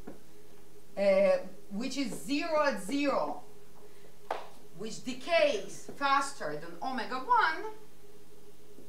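A woman speaks calmly, as if lecturing.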